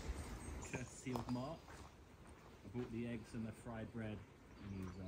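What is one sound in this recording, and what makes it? Footsteps crunch on dry forest ground.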